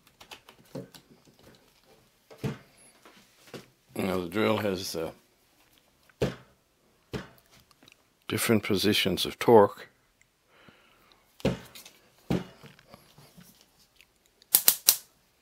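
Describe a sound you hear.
Plastic knocks and clicks as a cordless drill is handled.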